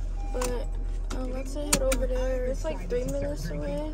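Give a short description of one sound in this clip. A seatbelt buckle clicks into place.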